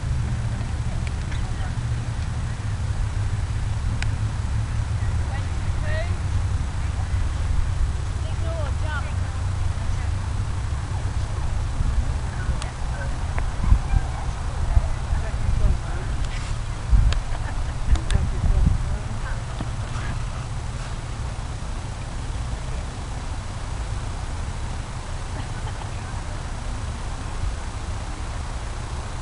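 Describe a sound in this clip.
Wind blows across an open field outdoors.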